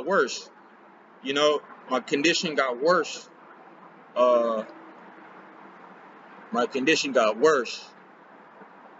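A young man talks close to the microphone in short, animated bursts.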